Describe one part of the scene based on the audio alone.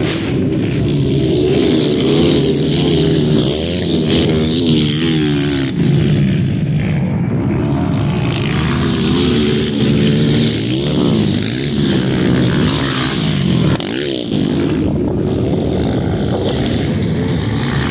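A motorcycle engine roars close by, revving up and down.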